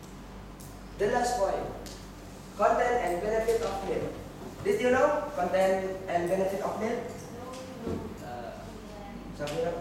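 A young man speaks up clearly to a room.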